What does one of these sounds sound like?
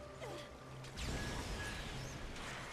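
An electric crackle buzzes and sparks.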